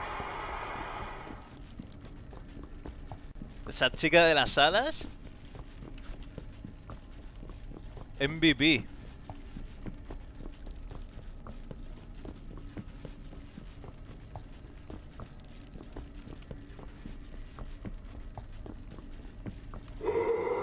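Footsteps tread steadily across a hard floor.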